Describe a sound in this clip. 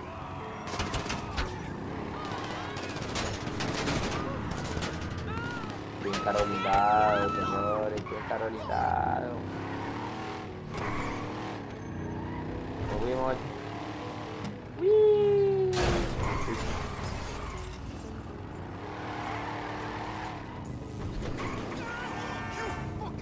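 A car engine hums and roars as the car speeds along.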